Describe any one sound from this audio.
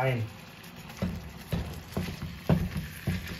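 A spatula scrapes across a frying pan.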